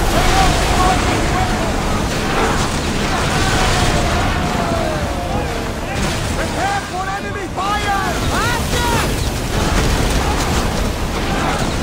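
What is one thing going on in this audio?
Timber crashes and splinters as ships ram.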